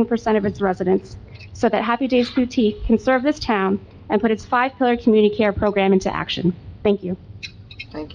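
A woman speaks clearly into a microphone, heard through loudspeakers.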